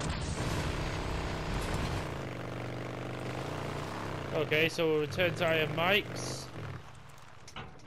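A motorcycle engine rumbles steadily and shifts in pitch.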